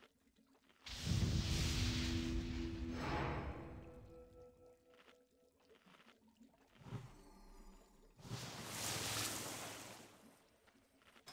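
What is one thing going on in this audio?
Spell effects whoosh loudly in short bursts.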